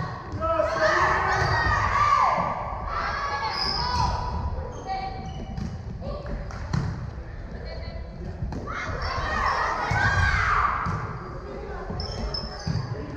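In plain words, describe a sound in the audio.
A volleyball thumps as it is hit.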